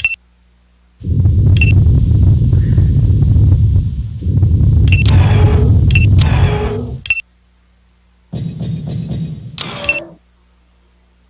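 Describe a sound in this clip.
Heavy robotic footsteps thud and whir in a game.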